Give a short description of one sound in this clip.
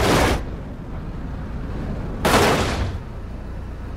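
A car crashes loudly against rock.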